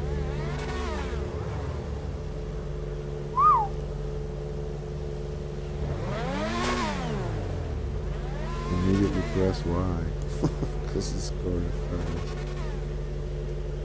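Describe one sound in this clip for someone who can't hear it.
Racing car engines rev up and down.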